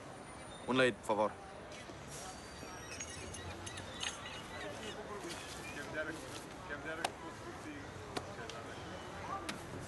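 People chatter quietly in the background outdoors.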